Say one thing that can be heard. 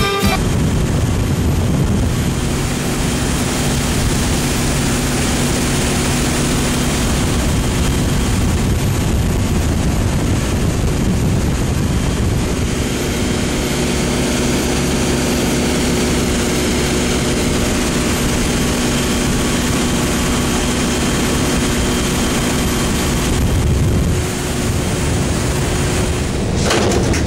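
Water sprays and rushes loudly against a boat's hull.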